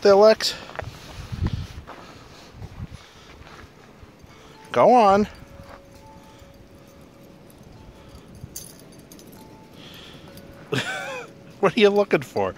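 A dog paws and digs in crunching snow.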